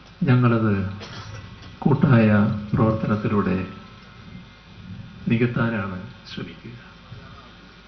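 An elderly man speaks loudly into a microphone.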